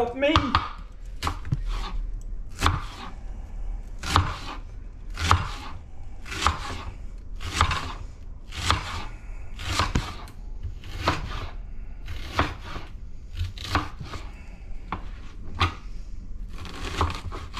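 A knife chops through an onion onto a cutting board with steady, regular knocks.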